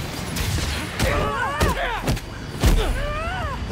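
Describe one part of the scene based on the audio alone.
Heavy thuds land on a metal deck.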